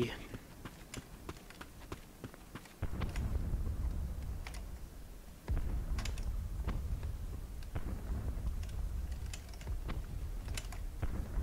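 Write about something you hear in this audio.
Footsteps fall on a hard tiled floor.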